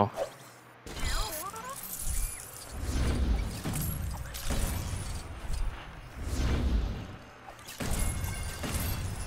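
Bright chimes jingle.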